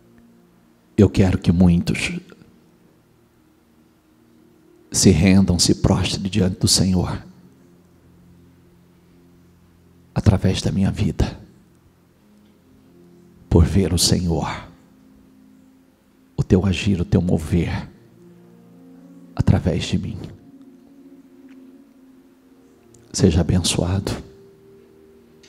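A man speaks forcefully into a microphone over a loudspeaker, in short bursts with long pauses.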